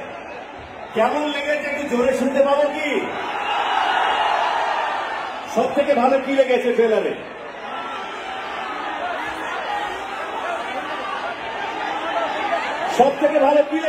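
A young man sings loudly into a microphone over loudspeakers.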